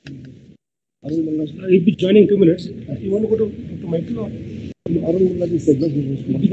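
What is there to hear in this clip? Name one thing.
Several people speak on an online call.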